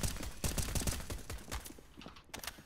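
Rapid rifle shots fire in a burst.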